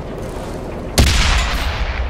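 A tank cannon fires with a loud, sudden boom.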